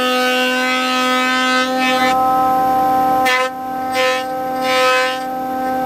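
A planer machine hums steadily with a high whine.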